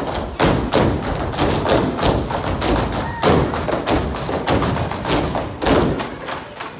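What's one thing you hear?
Music with a heavy beat plays through loudspeakers in a large hall.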